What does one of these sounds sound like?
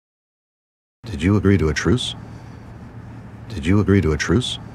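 A man asks a question in a low, calm voice.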